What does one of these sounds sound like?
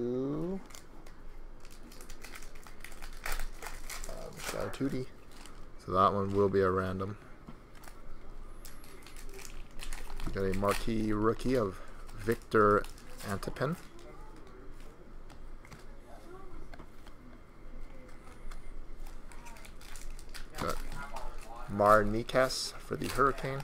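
Trading cards flick and rustle as hands sort through them.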